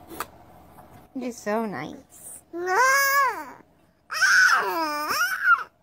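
A young child coos and babbles up close.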